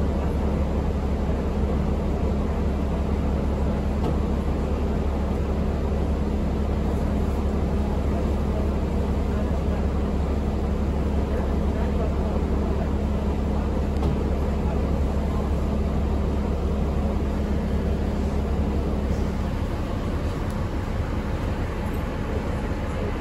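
A bus engine hums steadily with a low rumble while driving.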